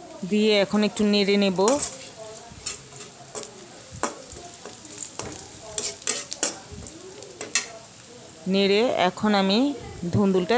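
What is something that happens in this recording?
A metal spatula scrapes and clacks against a wok.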